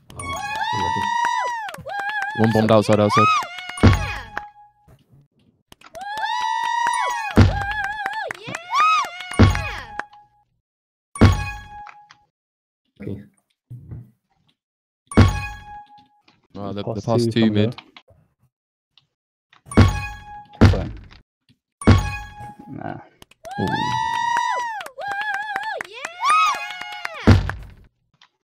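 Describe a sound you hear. Electronic game tones chime and sweep up and down in short bursts.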